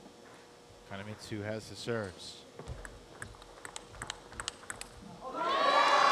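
A ping-pong ball clicks back and forth off paddles and a table.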